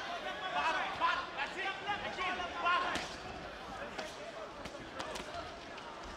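Boxing gloves thud against a body in quick punches.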